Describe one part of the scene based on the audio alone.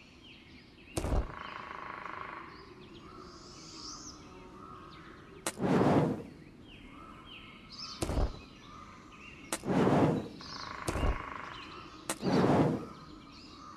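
Magical shimmering chimes ring out as glowing crystals light up, one after another.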